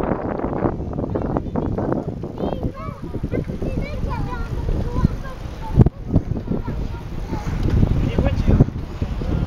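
Bicycles roll past on a paved road.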